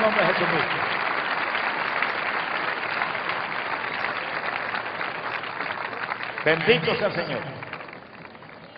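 A large crowd cheers and applauds in an open stadium, slowly fading.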